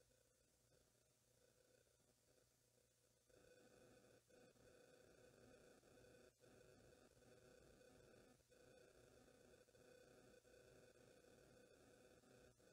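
An electric fan hums steadily nearby.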